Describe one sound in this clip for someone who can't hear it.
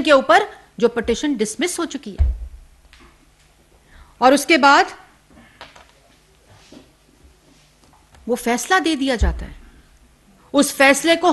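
A woman speaks with animation into microphones, with pauses.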